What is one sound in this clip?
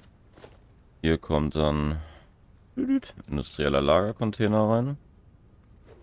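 A man talks with animation into a nearby microphone.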